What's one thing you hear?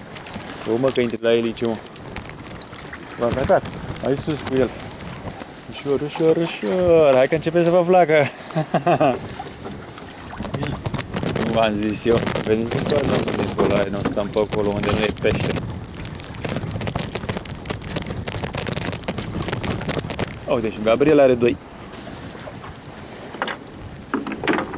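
Water splashes against the side of a small boat.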